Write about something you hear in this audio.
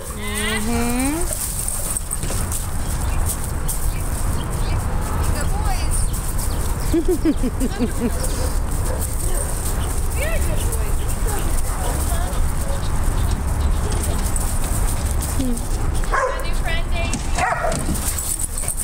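Dogs bark and yelp nearby.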